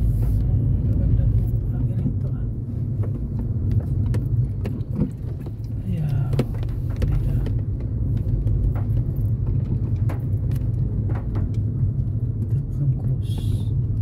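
A car drives along a wet road, with a low rumble heard from inside.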